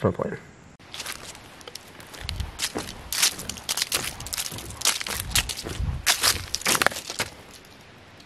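Footsteps thud and creak on wooden boards.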